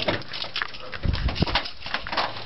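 A car door opens with a clunk.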